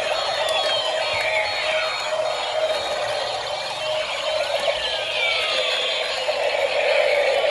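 Several toy sirens wail and warble at once.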